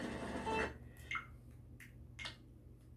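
Short menu blips sound from a television speaker.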